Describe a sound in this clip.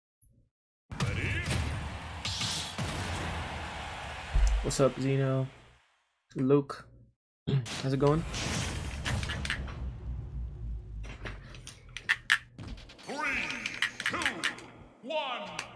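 Upbeat video game music plays.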